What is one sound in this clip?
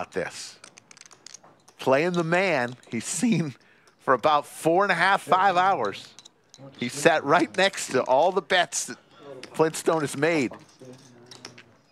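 Poker chips click together as a hand shuffles them.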